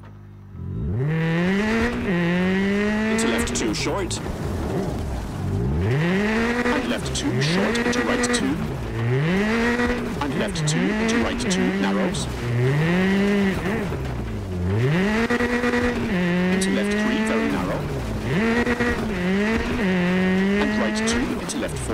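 Gravel crunches and sprays under a car's tyres.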